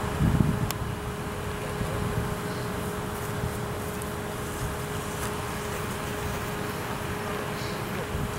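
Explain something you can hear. Grazing animals tear and munch grass close by.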